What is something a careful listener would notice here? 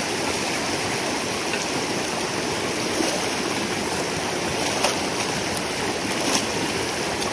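Water gushes and splashes steadily.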